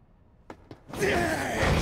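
A man shouts angrily.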